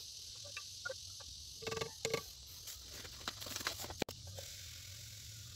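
A stirrer clinks against a glass jar.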